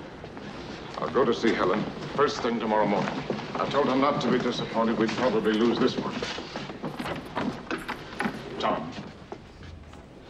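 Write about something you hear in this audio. A crowd murmurs and stirs in an echoing room.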